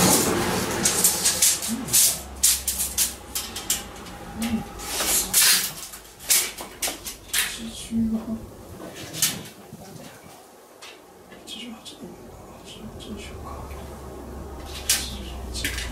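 A man knocks and taps on a door frame up close.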